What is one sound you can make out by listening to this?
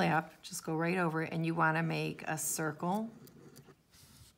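A felt-tip pen scratches softly on paper.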